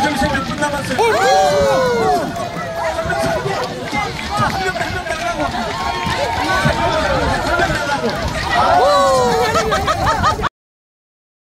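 Women and girls scream and cheer excitedly.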